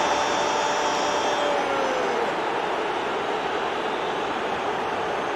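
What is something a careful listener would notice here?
A large crowd roars and cheers loudly in a stadium.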